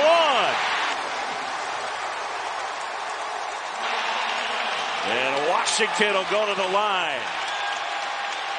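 A large crowd cheers and roars loudly in an echoing arena.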